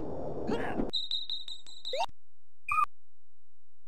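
A game menu beeps with short electronic tones.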